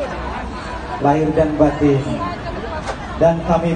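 A woman speaks loudly through a microphone, calling out.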